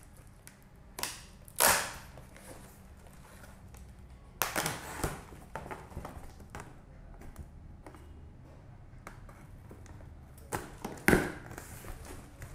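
Tape rips from a cardboard box.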